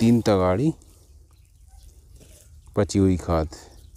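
Loose soil crumbles and rustles between fingers.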